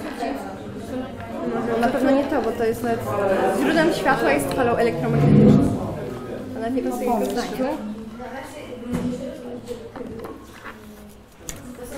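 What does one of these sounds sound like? A woman speaks to children nearby.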